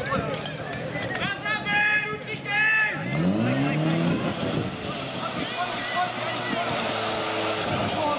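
Children shout excitedly to each other.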